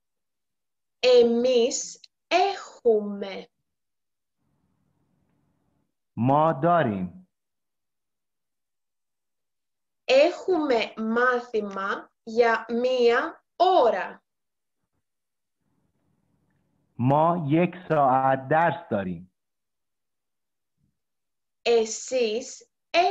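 A young woman speaks calmly and clearly into a microphone, in short phrases with pauses.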